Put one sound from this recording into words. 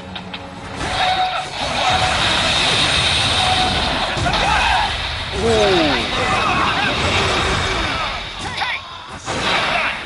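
Sword slashes whoosh and clang in a busy fight.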